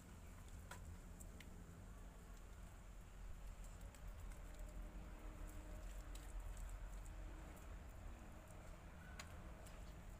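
Wet mortar squelches as a hand scoops it from a pan.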